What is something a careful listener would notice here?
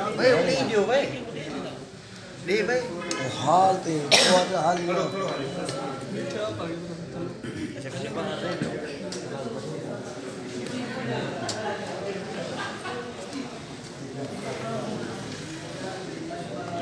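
Many men talk at once in a crowded room.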